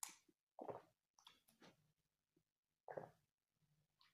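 A boy gulps a drink close by.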